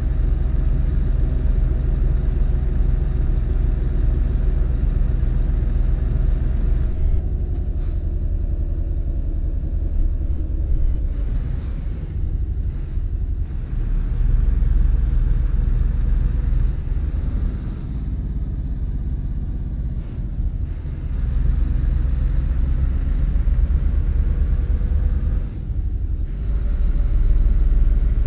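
Tyres roll on a road surface.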